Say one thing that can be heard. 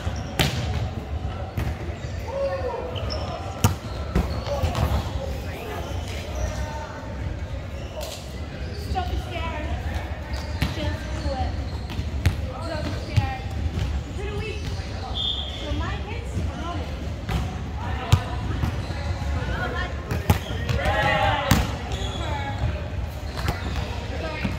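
A volleyball thumps off players' arms and hands.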